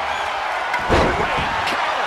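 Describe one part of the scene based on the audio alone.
A body slams hard onto the ring mat.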